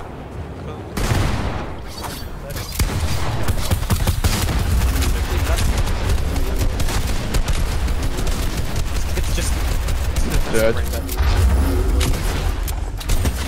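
Gunshots and building clatter crack sharply in quick bursts.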